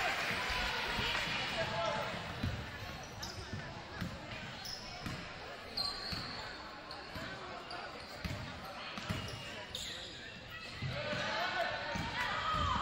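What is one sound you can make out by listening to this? A crowd cheers and murmurs in a large echoing gym.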